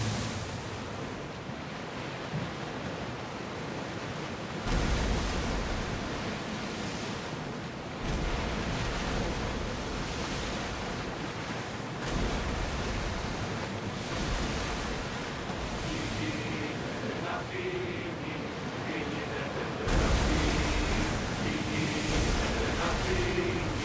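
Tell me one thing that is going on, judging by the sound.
Wind blows over open sea.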